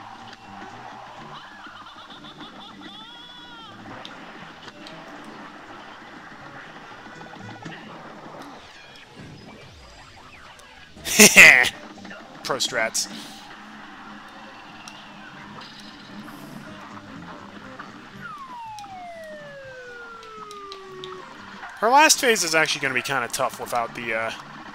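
Cartoon game music plays throughout.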